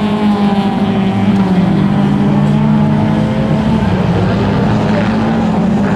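Car engines roar loudly as race cars speed over a dirt track, the pitch rising and falling.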